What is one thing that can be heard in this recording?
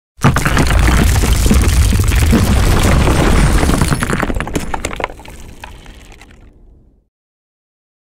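Rock shatters and debris crashes down with a deep rumble.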